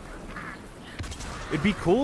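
A gun fires with a loud bang.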